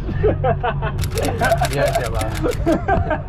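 A second young man laughs loudly close by.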